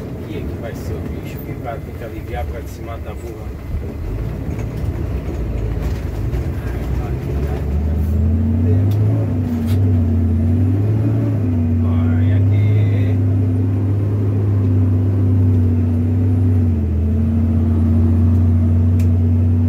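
Tyres crunch and rumble over a bumpy sandy track.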